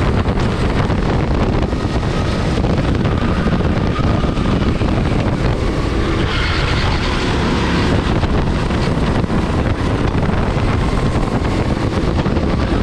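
Wind buffets hard over the recording.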